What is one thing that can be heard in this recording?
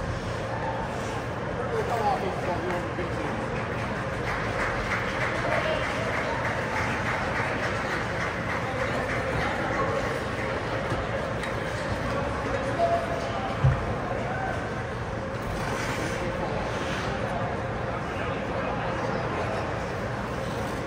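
A crowd murmurs and chatters in a large echoing arena.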